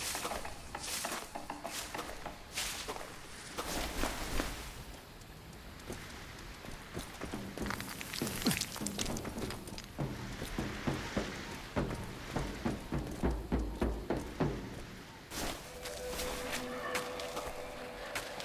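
Hands grab and scrape against rough rock and branches while climbing.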